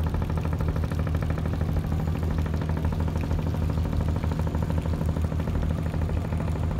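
A boat's diesel engine chugs steadily close by.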